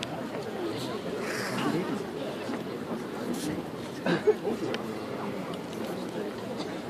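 A large crowd chatters nearby in an open, echoing stadium.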